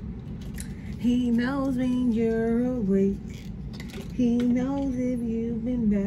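A young woman sings softly close by.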